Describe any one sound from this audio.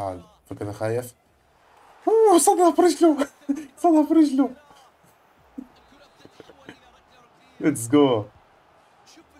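A young man talks excitedly and close to a microphone.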